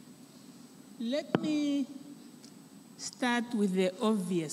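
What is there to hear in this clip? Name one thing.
A woman speaks slowly into a microphone in a large echoing hall.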